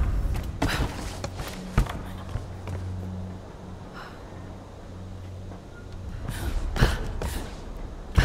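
Hands and boots knock against wooden planks while climbing.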